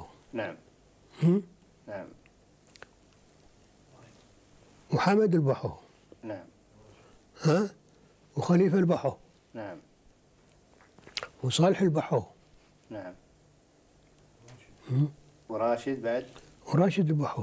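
An elderly man speaks calmly and slowly, close by, in short phrases with pauses.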